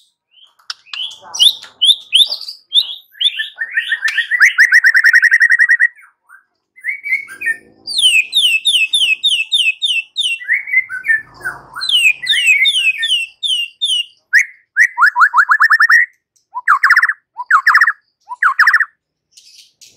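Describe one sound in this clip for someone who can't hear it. A songbird sings loud, rapid, varied phrases of whistles and trills close by.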